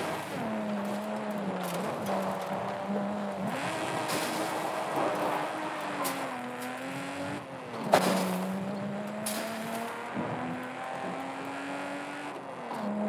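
A straight-six sports car engine revs and accelerates through the gears.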